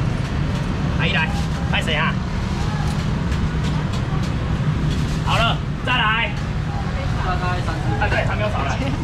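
A young man talks loudly nearby.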